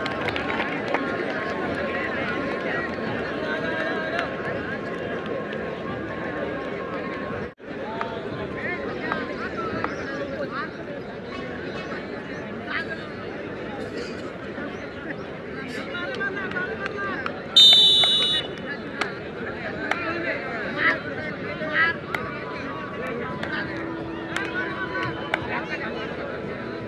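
Young men chatter and call out nearby outdoors.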